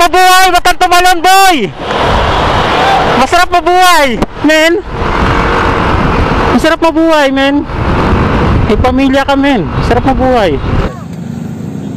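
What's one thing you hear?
A motorcycle engine hums steadily.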